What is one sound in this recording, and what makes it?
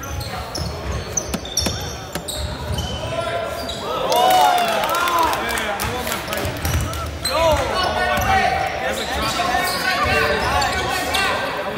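Spectators murmur and call out in a large echoing gym.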